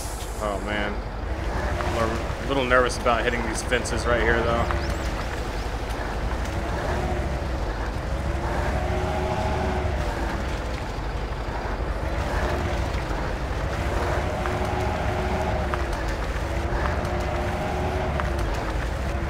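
A heavy truck engine drones and rises and falls in pitch as the truck churns through mud.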